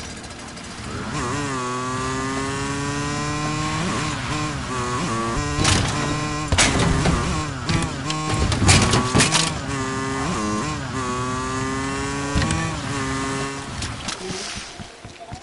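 A motorcycle engine revs and roars.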